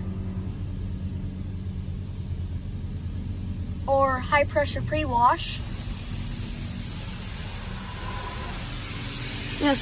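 Water jets spray and hiss against a car's windscreen.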